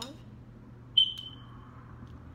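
A fork clinks sharply.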